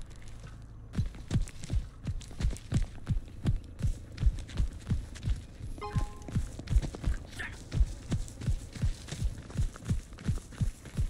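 Footsteps thud quickly and evenly on hard ground.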